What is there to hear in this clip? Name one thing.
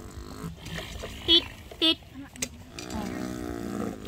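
A small plastic toy tractor scrapes through soft dirt.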